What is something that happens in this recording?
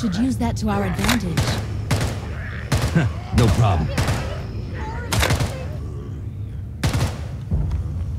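Pistol shots crack loudly, one after another, echoing off hard walls.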